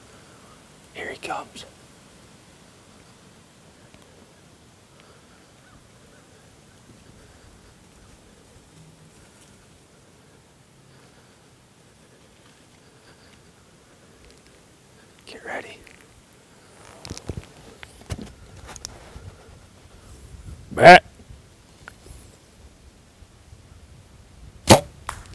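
A deer grunts in short bursts nearby.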